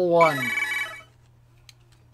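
A short electronic jingle plays and drops in pitch.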